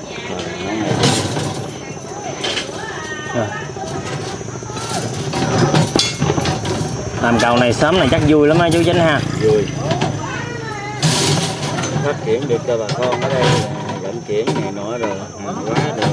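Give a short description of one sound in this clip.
Metal rods clink and scrape against each other.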